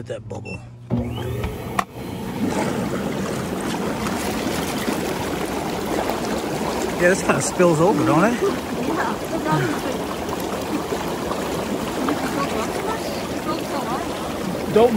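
Water churns and bubbles loudly and steadily.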